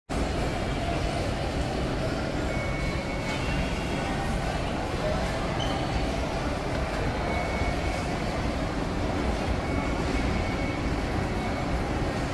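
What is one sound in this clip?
A low murmur of distant voices echoes through a large hall.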